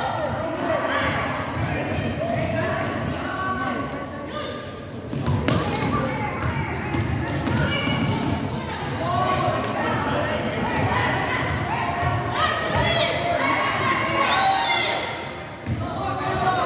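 Young players call out to each other in an echoing gym.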